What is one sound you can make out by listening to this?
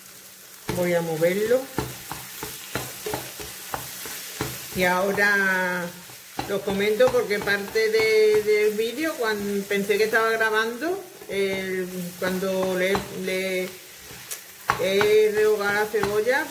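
A spatula stirs minced meat in a frying pan.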